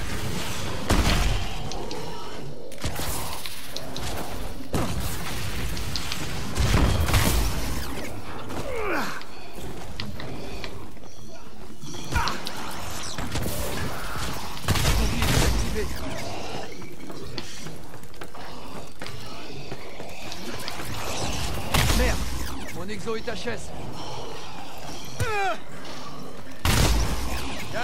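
Gunfire rings out in short, loud bursts.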